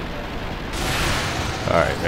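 An electric blast crackles and bursts.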